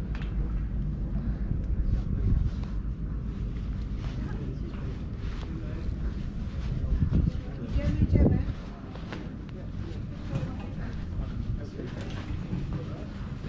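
Footsteps clang on a metal grate walkway.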